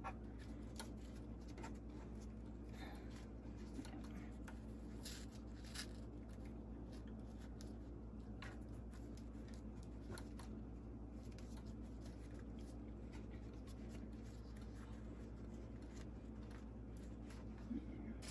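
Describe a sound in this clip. Fabric rustles and crinkles softly under hands.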